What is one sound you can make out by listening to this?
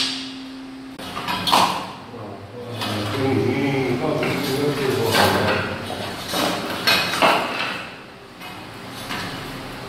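A metal bar pries up wooden floor tiles with scraping and cracking.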